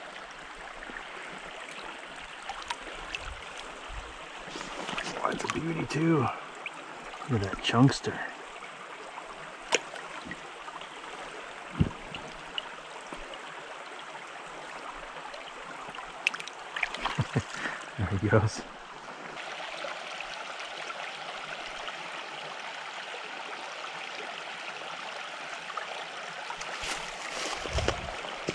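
A shallow stream ripples and burbles over rocks.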